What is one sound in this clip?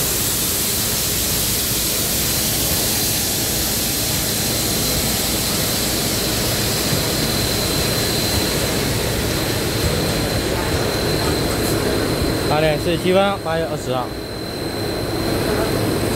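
Steam hisses loudly from a steam locomotive.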